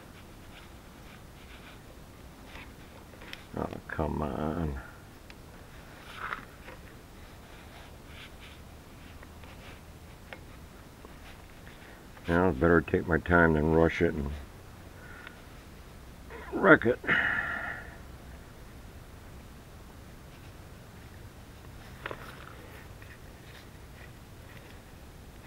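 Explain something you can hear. A metal wrench clicks and scrapes against metal fittings.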